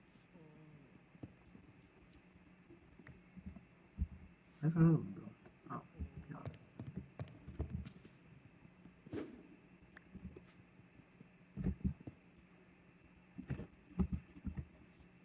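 Stone blocks crack and crumble in quick taps as they are broken.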